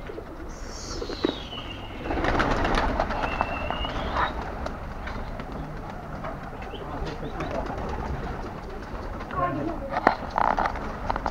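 Pigeons flap their wings loudly as they take off in a flock.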